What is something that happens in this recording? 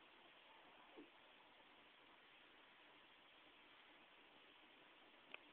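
A small television plays muffled, tinny sound.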